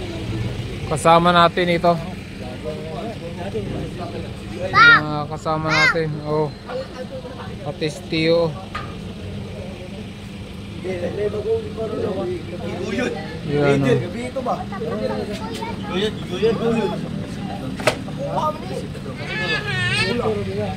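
Young men talk casually nearby, outdoors.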